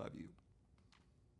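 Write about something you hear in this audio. An older man speaks a few words calmly, close to a microphone.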